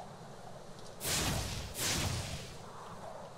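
A cartoon dragon breathes a roaring burst of fire.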